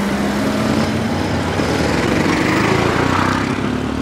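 A motorcycle revs and pulls away.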